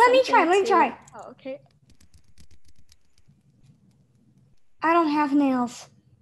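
A performer speaks close by in a high, squeaky character voice, with animation.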